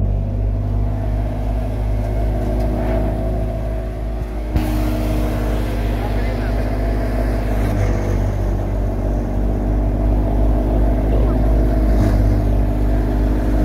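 A threshing machine engine drones and rumbles steadily close by.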